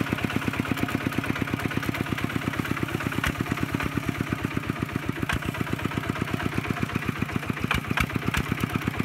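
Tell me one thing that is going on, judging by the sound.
A small diesel engine chugs rapidly and steadily close by.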